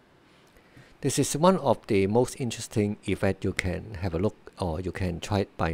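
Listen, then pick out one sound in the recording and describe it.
A man speaks calmly and close to a computer microphone.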